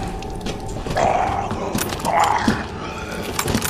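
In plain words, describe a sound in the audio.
A zombie groans hoarsely.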